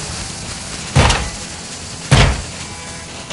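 A metal lid is pried open with a tool.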